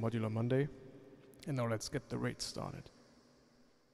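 A man speaks closely into a microphone.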